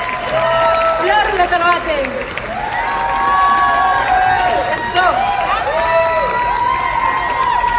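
A woman sings into a microphone over a loudspeaker system.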